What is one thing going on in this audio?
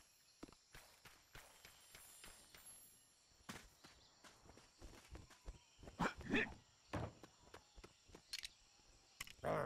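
Quick footsteps patter and clatter on hard ground.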